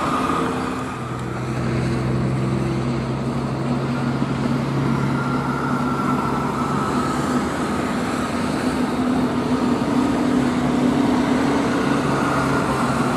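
A truck engine rumbles steadily as it passes close by.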